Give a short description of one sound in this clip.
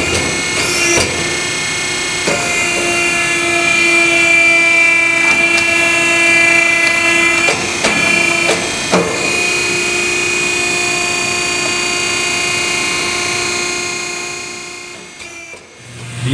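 A grinding tool whines steadily as it cuts into a tyre's rubber.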